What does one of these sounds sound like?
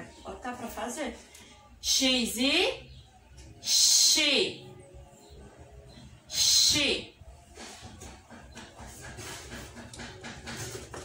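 A young woman speaks clearly and with animation close to a microphone, drawing out syllables in a sing-song way.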